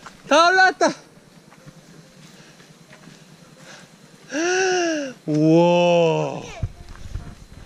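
A young child calls out loudly in a high voice.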